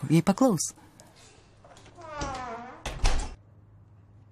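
A door swings shut with a thud.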